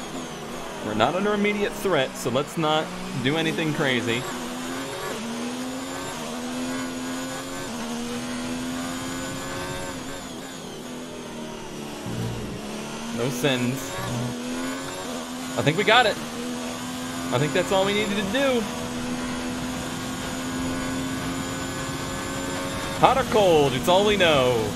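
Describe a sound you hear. A racing car engine revs sharply up and down in quick bursts.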